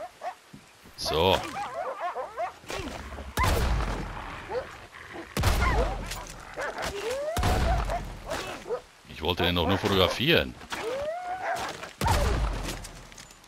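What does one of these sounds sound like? A knife cuts and tears wetly through an animal's hide.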